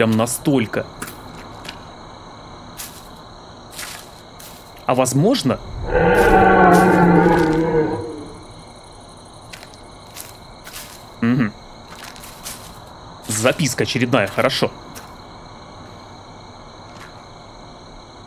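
Footsteps crunch on dry leaves at a steady walking pace.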